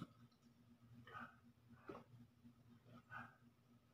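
A young man gulps water.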